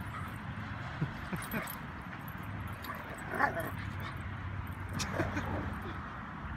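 Dogs growl and yip playfully while wrestling.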